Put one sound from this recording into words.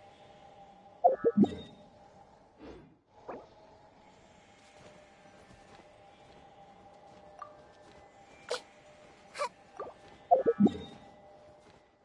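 Soft game menu chimes and clicks sound as menus open and close.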